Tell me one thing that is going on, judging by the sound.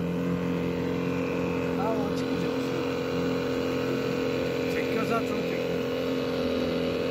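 Water rushes and splashes against a boat's hull.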